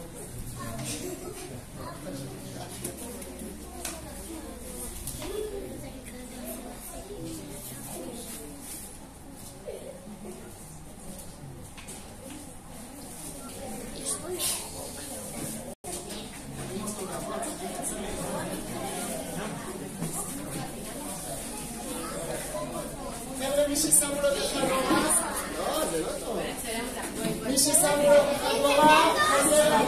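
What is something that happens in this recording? Many children chatter and call out in a large echoing hall.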